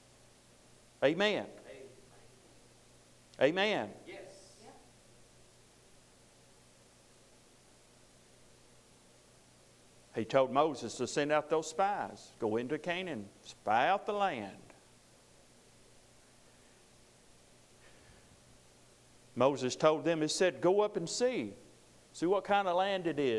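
A middle-aged man speaks slowly and earnestly into a close microphone, with long pauses.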